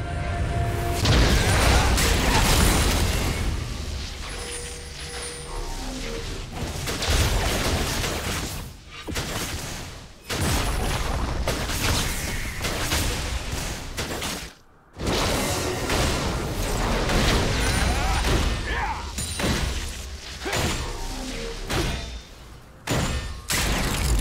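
Video game spells and attacks whoosh, crackle and clash in a fight.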